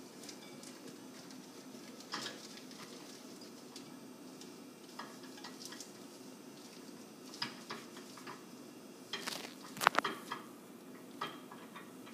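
A glass plate clinks inside a microwave.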